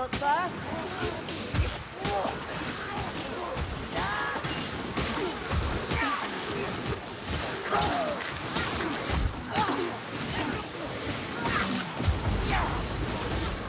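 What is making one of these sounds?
Monsters snarl and screech in a fierce fight.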